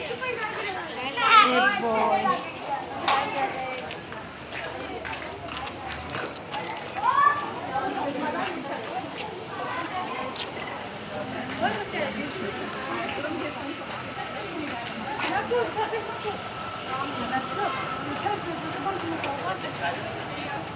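A crowd of women chatter and call out nearby outdoors.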